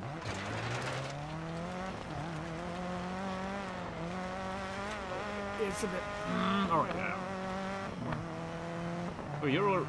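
A car engine revs hard and shifts up through the gears.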